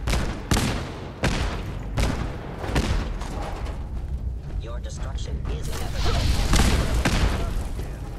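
Heavy gunfire bursts out in loud, sharp shots.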